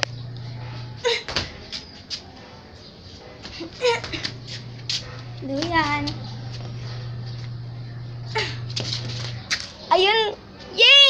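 A young girl talks and laughs playfully close by.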